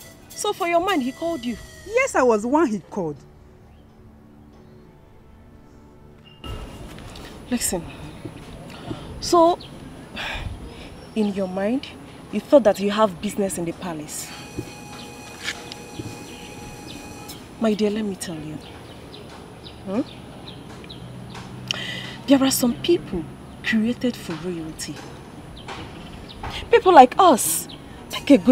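A young woman speaks with animation, close by.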